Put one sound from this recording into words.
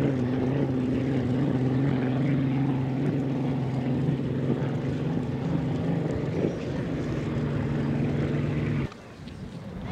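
A racing boat's engine roars loudly across the water.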